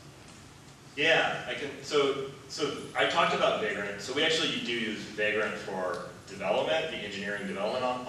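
A man speaks through a microphone in a large echoing hall.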